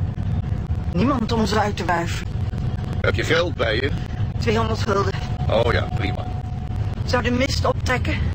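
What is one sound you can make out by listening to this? A man speaks through a crackly old radio loudspeaker.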